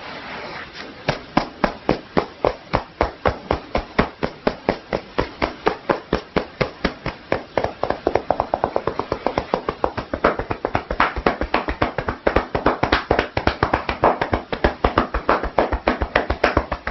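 Fingertips tap rapidly and steadily on a head of hair, heard up close.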